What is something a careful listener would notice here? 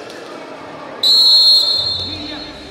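A referee blows a sharp whistle in an echoing gym.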